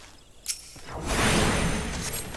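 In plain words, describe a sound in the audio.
A magic spell whooshes and crackles loudly.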